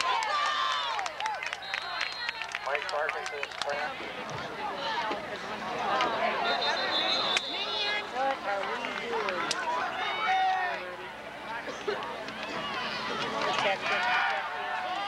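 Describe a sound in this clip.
A crowd of spectators talks and shouts outdoors.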